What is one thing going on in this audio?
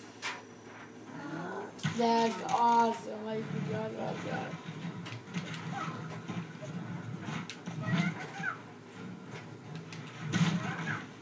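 Punches and kicks thud and crack from a video game fight through a television speaker.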